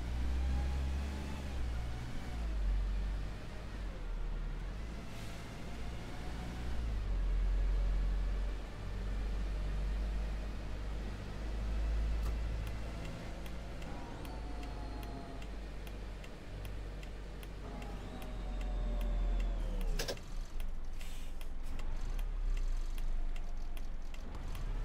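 A bus engine hums and whines as it drives along a road.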